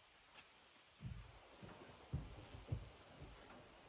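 Footsteps thump on a wooden deck.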